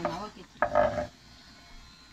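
A knife scrapes across a wooden chopping board.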